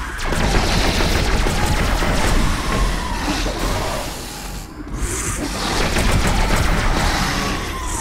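An electric blast crackles and bursts.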